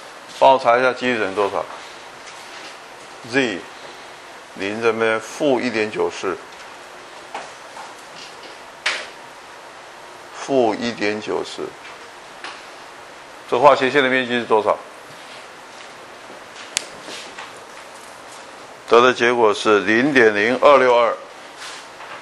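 An older man lectures calmly through a microphone, in short phrases with pauses.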